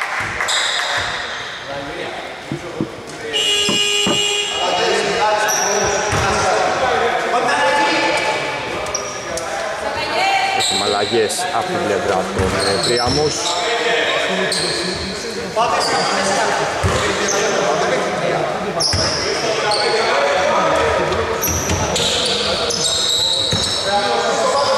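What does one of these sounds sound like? Men shout and call out to each other across an echoing hall.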